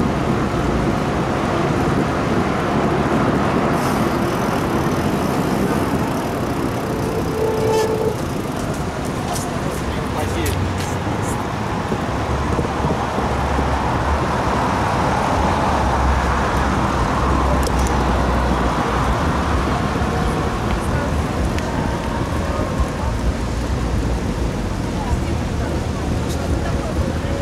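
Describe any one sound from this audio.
Wind rumbles loudly across a microphone.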